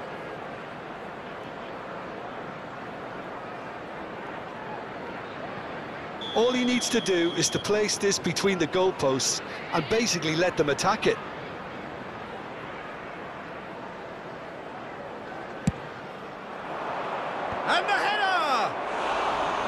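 A large stadium crowd murmurs steadily.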